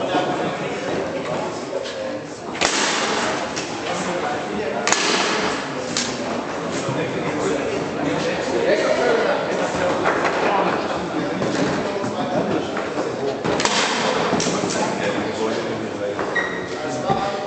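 Foosball rods clack and the ball knocks sharply against the table.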